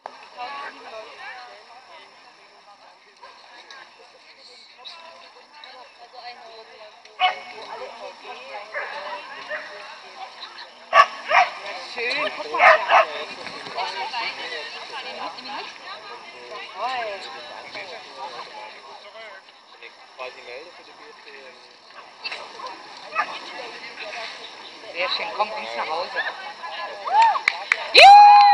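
A woman calls out commands to a running dog outdoors.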